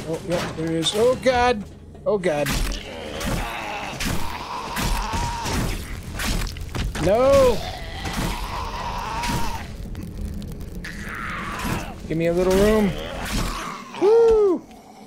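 A zombie growls and snarls.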